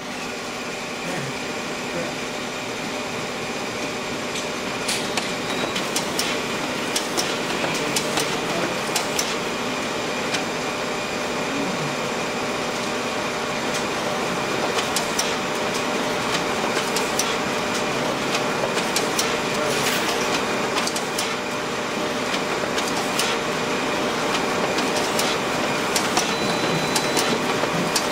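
A printer runs with a steady mechanical whir.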